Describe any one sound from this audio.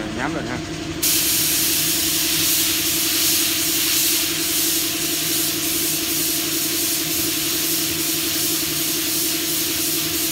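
A spray gun hisses loudly and steadily as it sprays paint.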